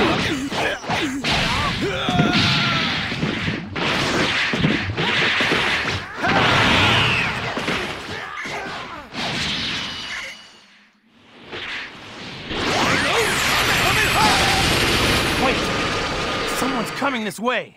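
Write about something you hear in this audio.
Energy blasts whoosh and explode.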